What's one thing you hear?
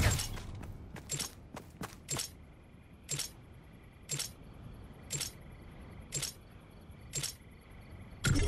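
A short electronic beep sounds once each second as a countdown.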